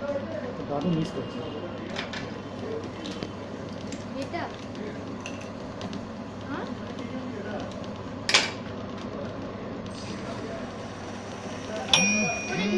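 A small metal lathe runs with a steady motor hum.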